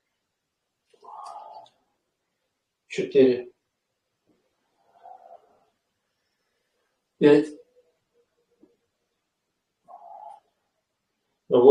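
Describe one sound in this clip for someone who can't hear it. A man speaks calmly nearby in short phrases.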